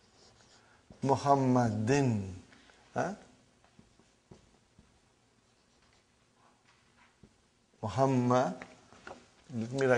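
An elderly man speaks slowly and clearly, as if teaching, with pauses.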